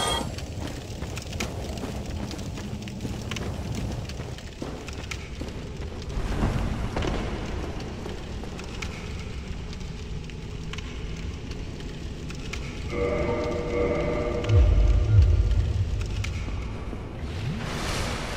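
A flame crackles and roars steadily.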